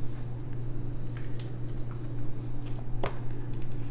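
A playing card taps and slides lightly on a tabletop.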